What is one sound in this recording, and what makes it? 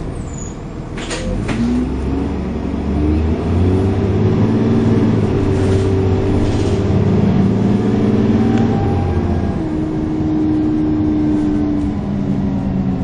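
A bus engine drones and whines, rising and falling in pitch as it changes gear.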